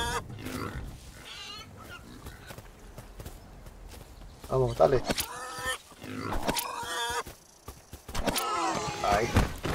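A wild boar grunts nearby.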